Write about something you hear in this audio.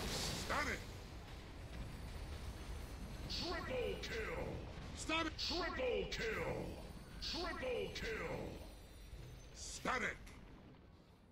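Game spell effects whoosh and crash in a fast battle.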